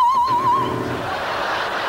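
A woman sings a sustained high note with wide vibrato, heard in a hall.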